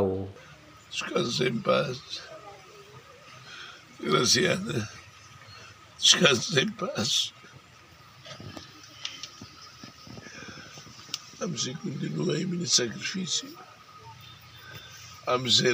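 An elderly man speaks slowly and solemnly, close by, outdoors.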